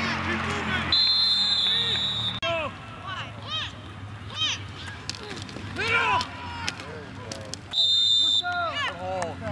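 A referee's whistle blows sharp, loud blasts.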